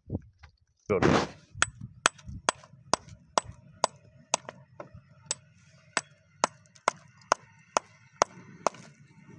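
A hammer strikes rock in quick, regular, sharp blows.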